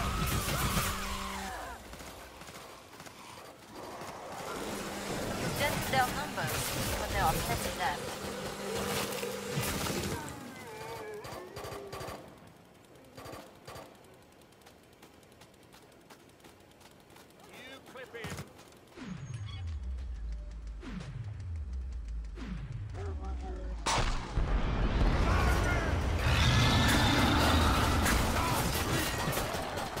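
A heavy machine gun rattles in rapid bursts.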